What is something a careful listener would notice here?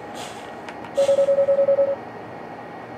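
A rapid electronic beeping ticks briefly.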